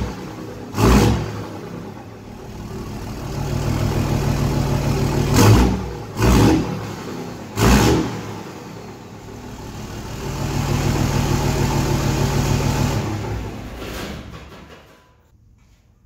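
A diesel engine revs up and down through an exhaust pipe.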